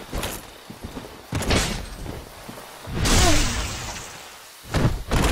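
Heavy armoured footsteps thud on soft ground, with metal clinking.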